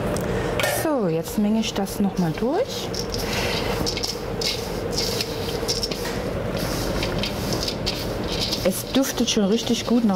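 Hands rustle and scrunch through dry flour and grains in a metal bowl.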